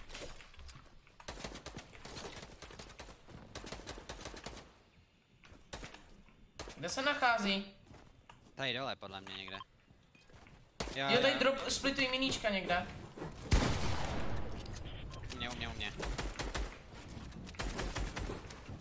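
Video game gunshots and building clicks crackle rapidly.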